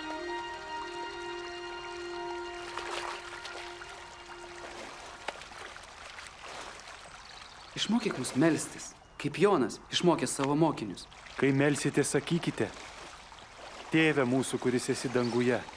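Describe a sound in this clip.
Water ripples and splashes over rocks in a stream.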